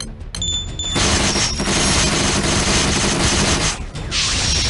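Loud crashing attack effects roar.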